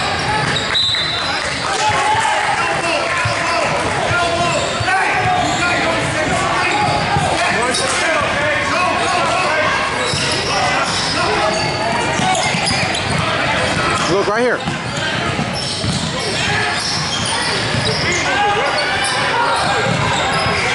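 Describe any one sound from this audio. Children and adults shout and call out in a large echoing gym.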